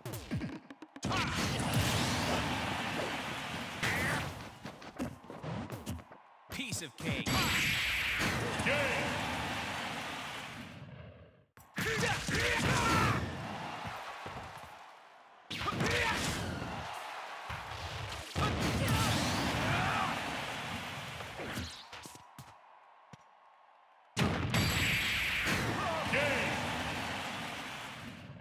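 Heavy game blows land with loud cracking impacts.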